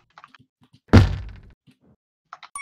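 An explosion booms briefly.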